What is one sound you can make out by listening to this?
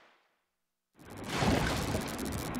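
A burst of liquid splashes loudly.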